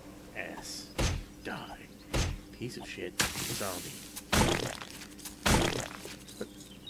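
A pickaxe strikes a body with heavy, wet thuds.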